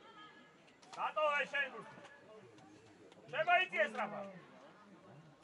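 Young female players shout loudly to each other outdoors.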